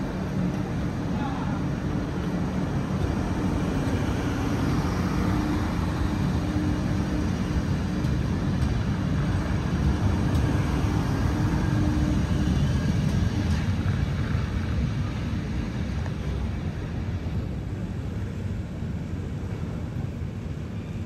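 A train rumbles along the rails past a platform.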